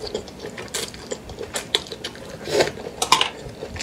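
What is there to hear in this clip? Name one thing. A young woman chews crunchy vegetables close to a microphone.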